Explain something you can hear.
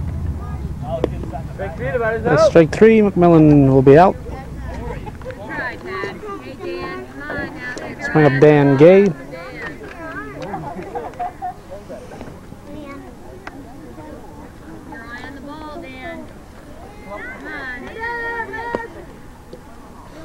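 Adults and children chatter and call out loudly outdoors.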